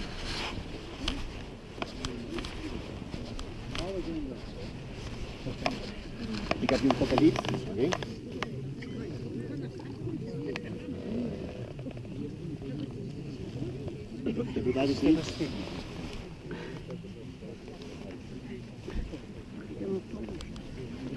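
Wind blows across an open hillside.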